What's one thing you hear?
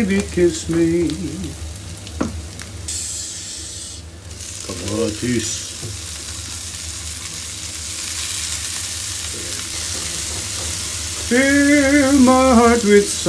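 Onions sizzle in a hot frying pan.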